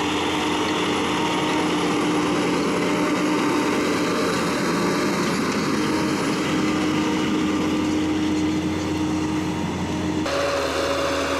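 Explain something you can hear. A disc harrow scrapes and churns through soil.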